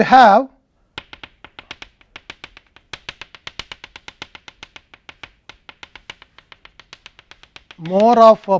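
Chalk taps rapidly on a blackboard.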